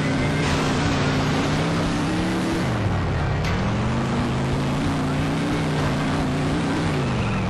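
A car engine hums steadily, dipping in pitch and then revving back up.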